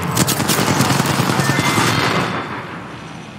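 Gunfire and electric crackling burst loudly in a game.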